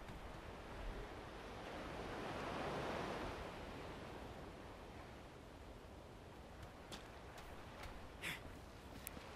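Water laps gently against a rocky shore.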